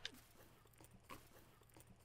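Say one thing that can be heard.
Zippers and bags rustle as schoolbags are opened.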